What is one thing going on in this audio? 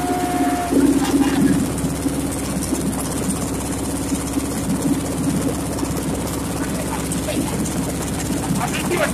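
Fish flap and slap against a net.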